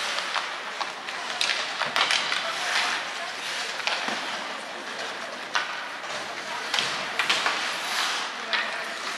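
Skate blades scrape and hiss on ice in a large echoing arena.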